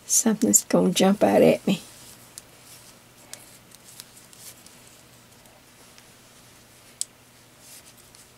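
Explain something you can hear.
Knitting needles click and tap together softly.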